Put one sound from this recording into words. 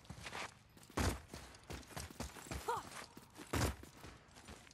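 A man lands hard with a heavy thud after a jump.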